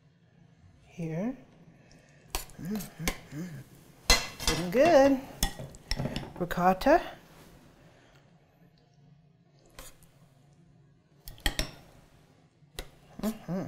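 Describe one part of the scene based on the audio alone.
A metal spoon scrapes and taps against a metal pan.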